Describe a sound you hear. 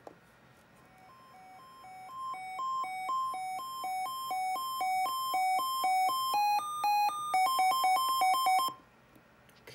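An electronic siren unit sounds pulsing, stepped electronic tones.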